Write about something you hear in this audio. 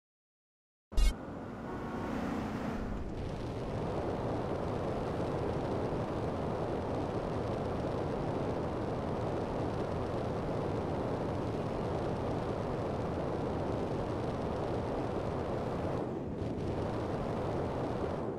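A jetpack roars with a steady rushing thrust.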